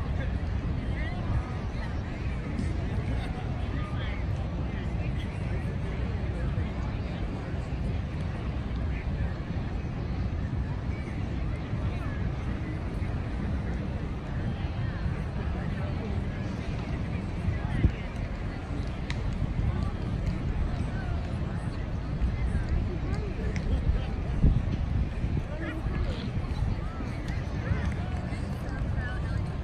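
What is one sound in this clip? A crowd of people chatters softly in the distance.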